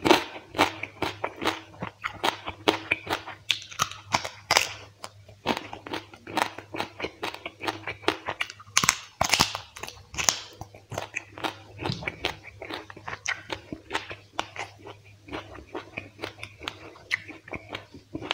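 Fingers squish and mix wet rice and sauce close to a microphone.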